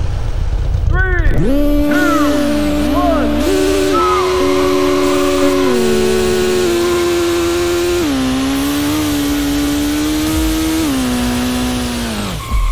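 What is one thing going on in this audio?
A racing car engine revs hard and climbs through the gears.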